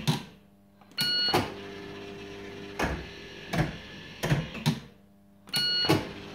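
A slot machine plays a short electronic jingle.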